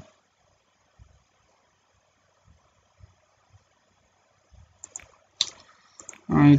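Soft clicks sound as buttons are pressed.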